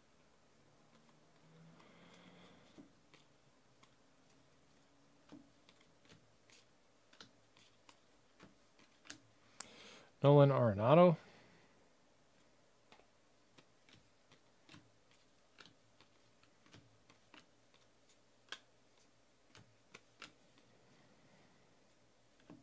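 Trading cards flick and snap softly as they are shuffled by hand.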